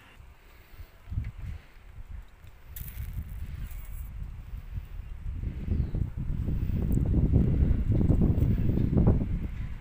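Gusty wind roars through pine trees and buffets the microphone.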